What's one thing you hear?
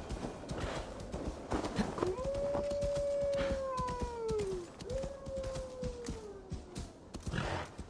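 A horse's hooves thud and crunch through snow.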